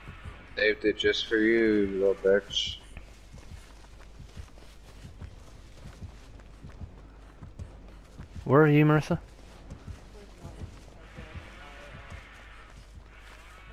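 Dry stalks rustle as someone runs through them.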